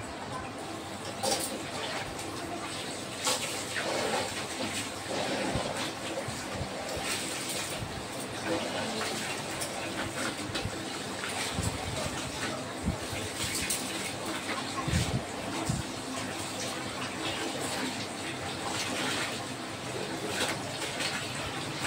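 Wet cloth splashes and sloshes in water as it is scrubbed by hand.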